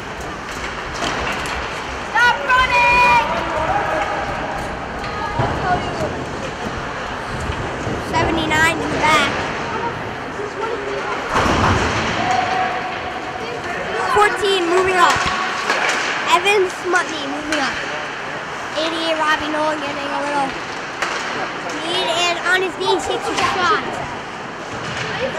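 Spectators shout and cheer in an echoing rink.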